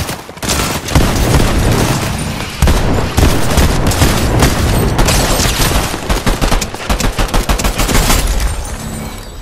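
Rapid gunfire crackles in a video game.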